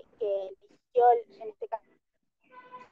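A teenage girl speaks with animation over an online call.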